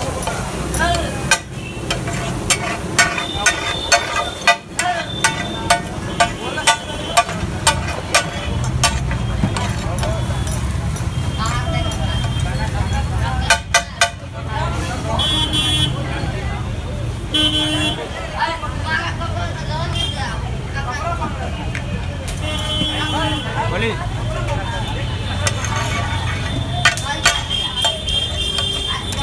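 A metal spatula clinks and scrapes against a hot griddle.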